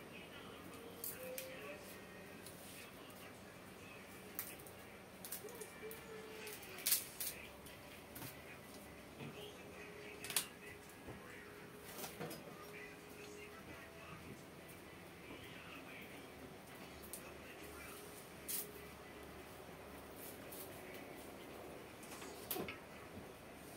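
Dishes and utensils clink and clatter close by.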